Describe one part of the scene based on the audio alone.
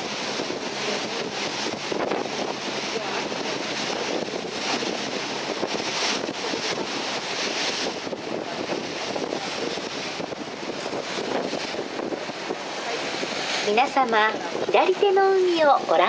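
Wind blows steadily across an open boat deck.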